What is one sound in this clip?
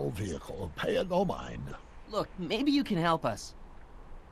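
A young man speaks pleadingly.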